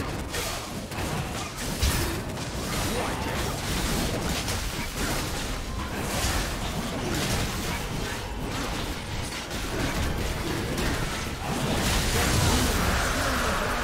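Fantasy battle sound effects of spells and blows clash rapidly.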